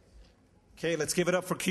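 A second man begins speaking into a microphone.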